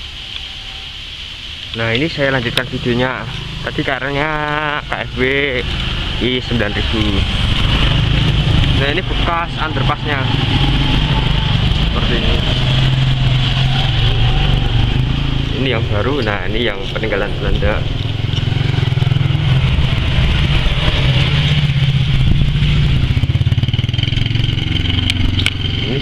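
A motorbike engine rumbles steadily close by.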